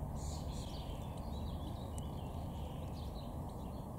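A small bird splashes while bathing in shallow water.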